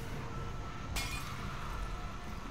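A bottle bomb bursts into flames with a roaring whoosh.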